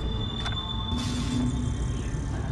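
A menu opens with a soft electronic whoosh.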